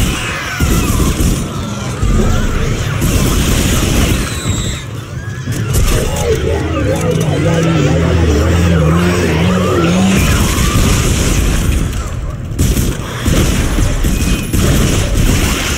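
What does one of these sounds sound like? A weapon fires in rapid bursts.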